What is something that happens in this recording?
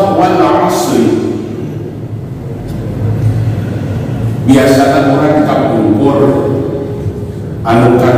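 A man recites in a long, drawn-out voice through a microphone and loudspeakers in a large echoing hall.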